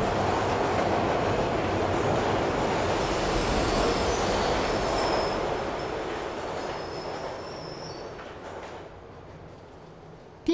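A train rumbles along the tracks and fades away.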